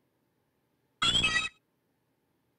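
A short electronic creature cry chirps.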